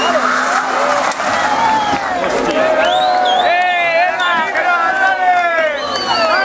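A rally car engine revs hard through a hairpin.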